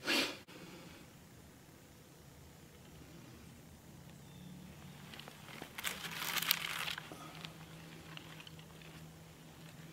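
Kindling catches fire and softly crackles.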